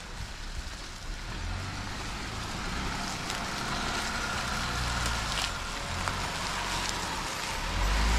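Tyres crunch over dry leaves and twigs.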